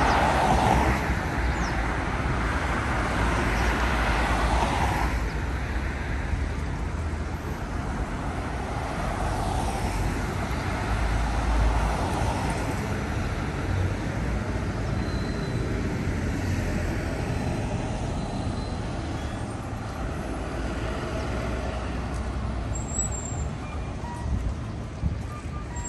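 Traffic hums steadily at a street crossing outdoors.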